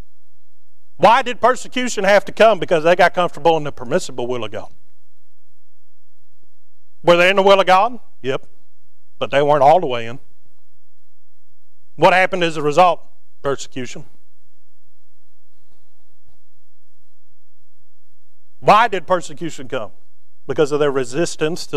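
A man preaches through a microphone in a large room, speaking in bursts with pauses.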